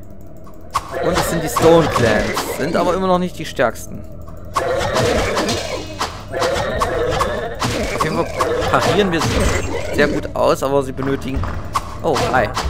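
Sword blows strike monsters in a fight.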